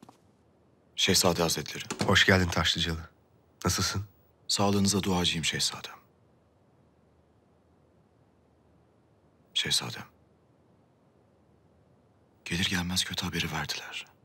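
A man speaks calmly and respectfully nearby.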